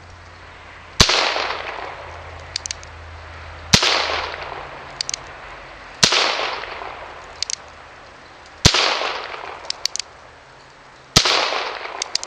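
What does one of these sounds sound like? A revolver fires loud shots that echo outdoors.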